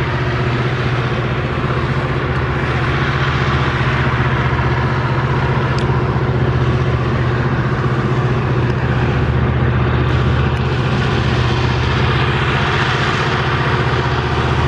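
Loaded ore wagons rumble and clatter along the rails.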